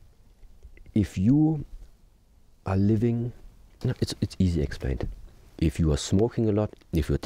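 A man speaks calmly and thoughtfully, close by.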